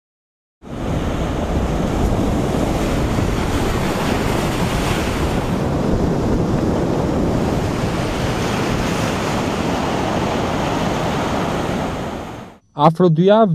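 Rough sea waves crash and roar steadily.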